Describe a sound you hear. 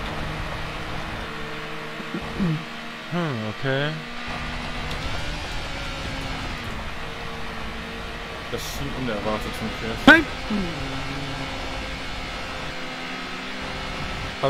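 A racing car engine drones steadily, its pitch climbing and dropping sharply as it shifts gears.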